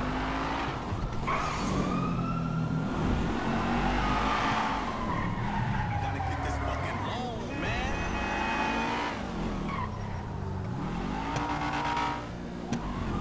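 A car engine revs and roars as it speeds up and slows down.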